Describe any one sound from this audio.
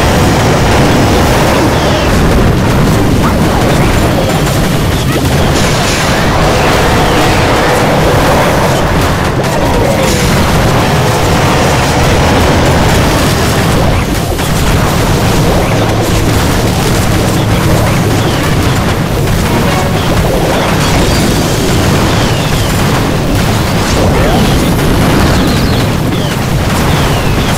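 Explosions and clashing battle effects from a strategy game sound continuously.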